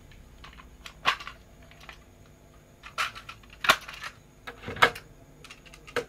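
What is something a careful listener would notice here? A plastic cassette case clicks and rattles as it is opened.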